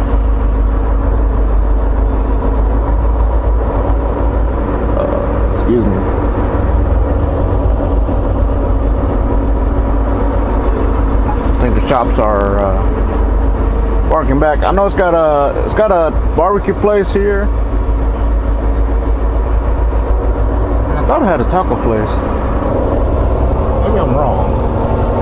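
A truck engine rumbles steadily at low speed.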